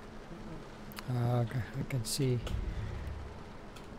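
A man talks calmly into a microphone.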